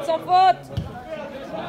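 A man shouts loudly nearby outdoors.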